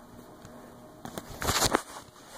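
A phone rubs and bumps as it is handled close by.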